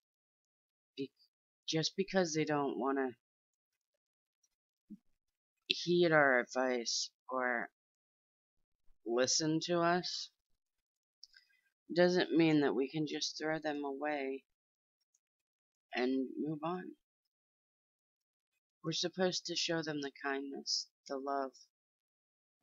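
A middle-aged woman speaks calmly into a close headset microphone, in short phrases with pauses.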